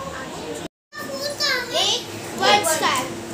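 A young girl speaks excitedly in a high voice close by.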